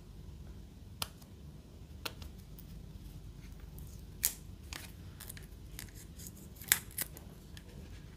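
Hard plastic clicks and creaks as a phone case is flexed by hand.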